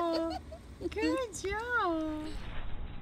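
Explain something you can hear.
A boy laughs close by.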